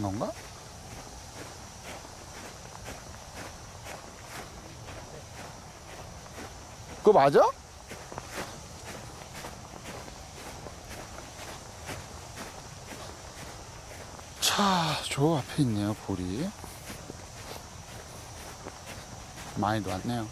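A man speaks close by in short bursts.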